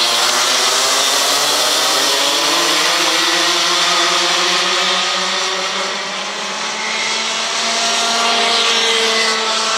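Kart engines buzz loudly as they race past and fade into the distance.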